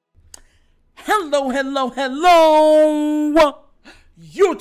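A young man speaks loudly and with animation into a microphone, close up.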